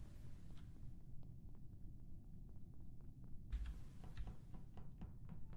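A young man speaks quietly into a microphone, close by.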